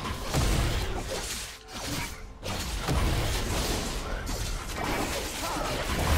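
Magical spells whoosh and crackle in a fierce fight.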